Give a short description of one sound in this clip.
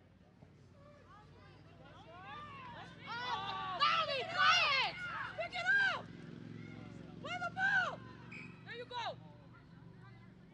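A crowd of spectators cheers and shouts excitedly outdoors.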